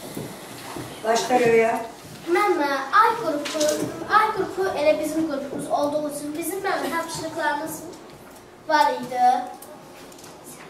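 A young girl speaks clearly and steadily, close by.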